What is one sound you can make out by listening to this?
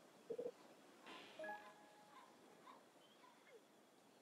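A bright electronic reward chime rings out with sparkling tones.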